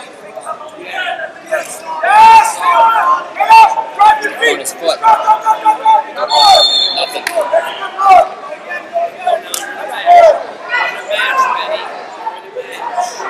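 Men shout loudly across a large echoing hall.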